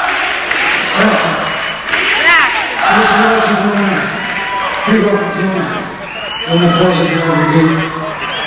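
A man sings loudly.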